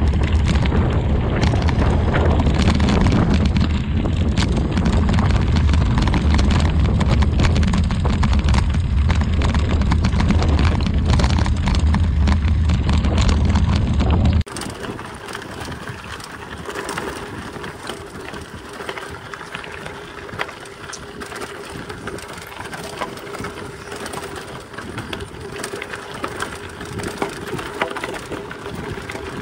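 Bicycle tyres crunch and rattle over loose gravel.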